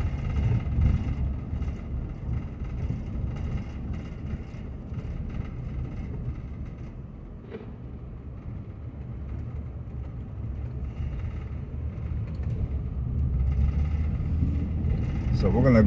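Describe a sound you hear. A car drives along a quiet road with a low, steady rumble.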